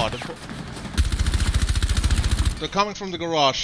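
Gunfire rattles in a rapid automatic burst.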